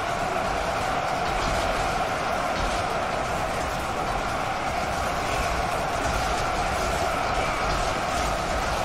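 Swords and shields clash in a dense din of a massive battle.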